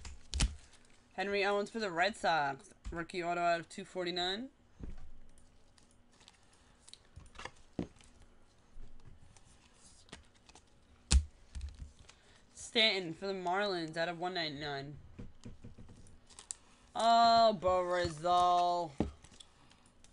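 Trading cards rustle and slide as hands handle them.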